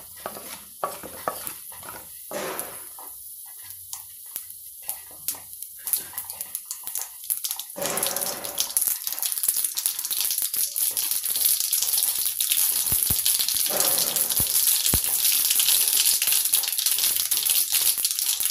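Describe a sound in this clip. Seeds crackle and sizzle in hot oil, growing louder.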